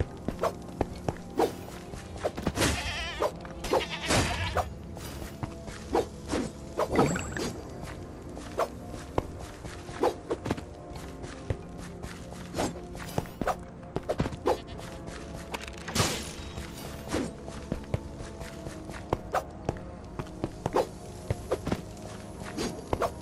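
Footsteps crunch steadily over snowy ground.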